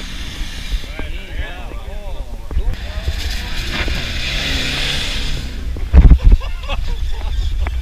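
Tyres churn through loose sand.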